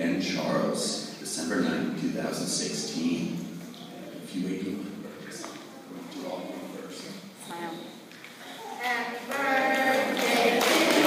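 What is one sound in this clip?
A man speaks into a microphone in a large echoing room.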